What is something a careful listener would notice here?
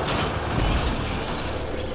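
An explosion booms and flames roar.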